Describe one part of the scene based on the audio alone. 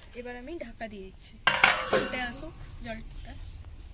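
A metal lid clatters onto a metal pan.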